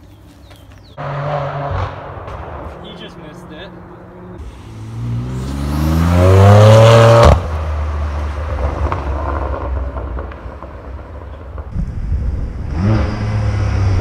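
A car engine revs loudly and roars past.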